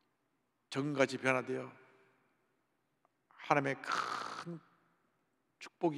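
A middle-aged man preaches with feeling through a microphone in a large echoing hall.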